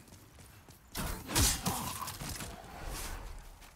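A sword swooshes and strikes with a burst of noise.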